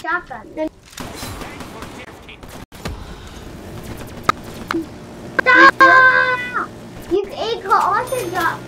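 A young child talks excitedly near a microphone.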